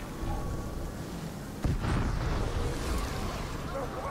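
Flames roar in a burst of fire.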